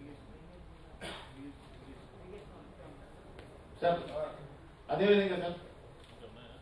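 A middle-aged man speaks into a microphone, heard over loudspeakers.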